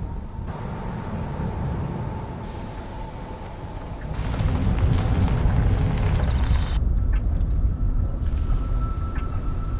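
Bicycle tyres roll steadily over grass, gravel and pavement.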